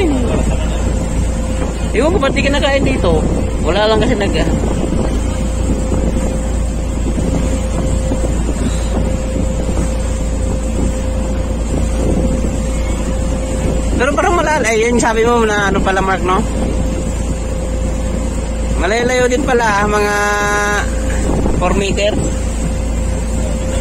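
Choppy water splashes against a boat's hull.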